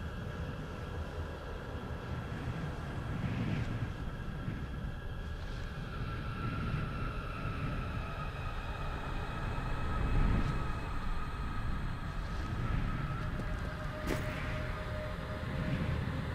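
A low, eerie game drone hums steadily.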